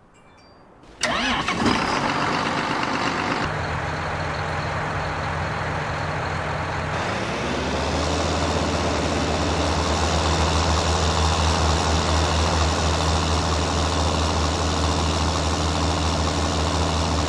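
A tractor engine rumbles steadily and revs up.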